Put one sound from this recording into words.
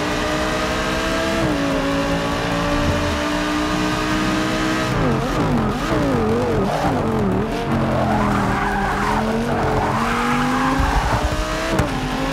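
A racing car engine roars at high revs, then drops and rises sharply as gears shift down and up.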